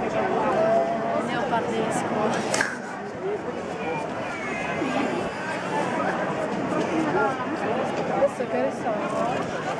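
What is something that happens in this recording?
A crowd of people chatters busily outdoors.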